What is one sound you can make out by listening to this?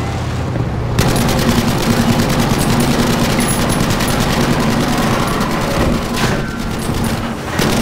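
A loud explosion booms and crackles nearby.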